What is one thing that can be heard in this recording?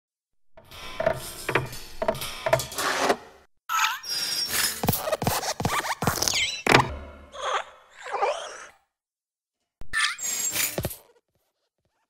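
A small metal desk lamp hops and lands with light thumps and squeaks.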